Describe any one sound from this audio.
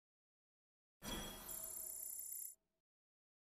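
A bright magical chime shimmers briefly.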